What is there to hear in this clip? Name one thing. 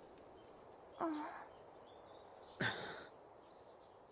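A young man answers briefly in a calm voice.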